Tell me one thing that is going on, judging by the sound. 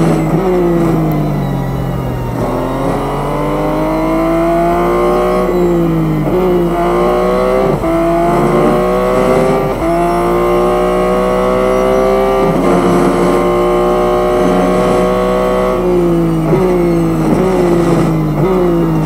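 A racing car engine roars loudly, its pitch climbing through the gears and dropping between shifts.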